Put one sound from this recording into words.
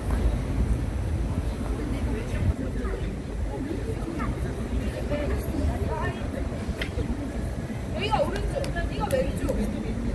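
Pop music with a heavy beat plays from a loudspeaker outdoors.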